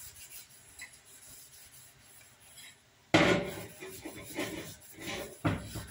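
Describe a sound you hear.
Water sloshes in a metal pot.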